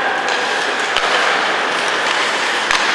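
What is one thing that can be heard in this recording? Hockey sticks click against the puck.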